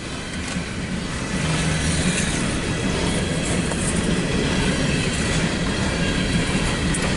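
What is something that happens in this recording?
A freight train's cars rumble and clatter along the tracks nearby.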